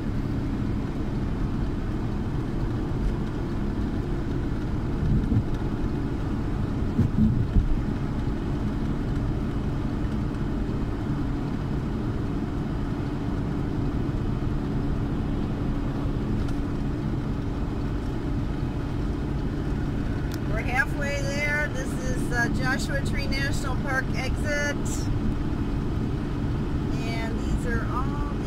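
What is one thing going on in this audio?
Road and engine noise rumble inside the cabin of a motorhome cruising at highway speed.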